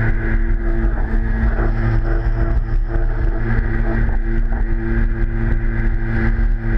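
A jet ski engine hums steadily at speed.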